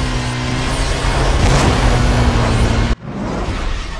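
A car's boost rushes with a loud whoosh.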